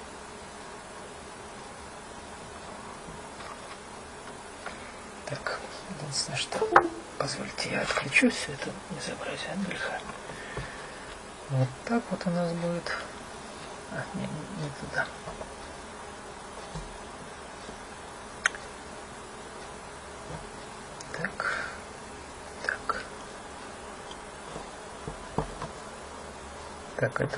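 Fingers handle small wires with light clicks and rustles.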